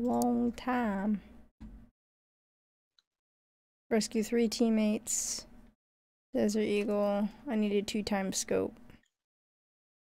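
A young woman talks calmly into a close microphone, in short bursts with pauses.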